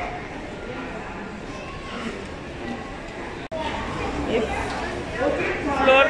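Many people murmur and chatter in a large echoing hall.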